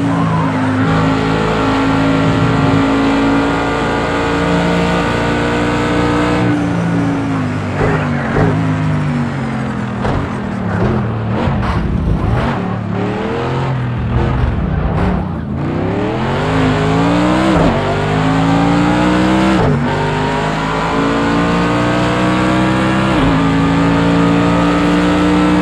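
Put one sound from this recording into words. A racing car engine roars loudly, revving up and down through gear changes.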